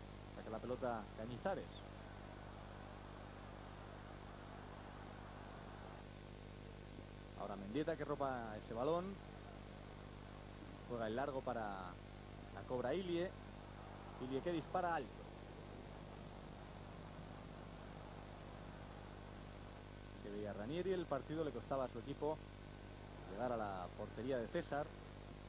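A large crowd murmurs steadily in a stadium.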